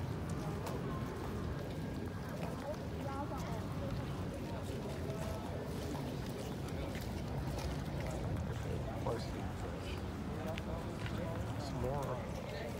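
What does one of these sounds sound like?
Footsteps walk steadily on a paved path outdoors.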